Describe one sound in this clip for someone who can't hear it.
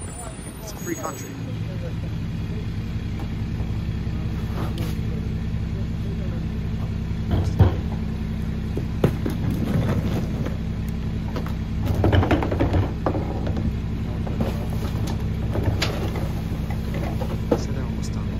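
A garbage truck engine idles with a steady low rumble.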